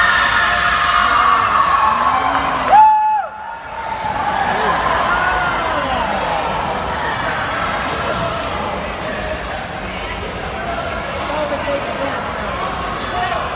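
A crowd of young people chatters and cheers in a large echoing hall.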